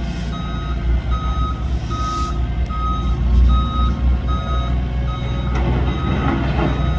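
A heavy loader's diesel engine rumbles steadily.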